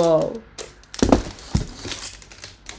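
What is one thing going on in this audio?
Cardboard packages knock and rustle on a table.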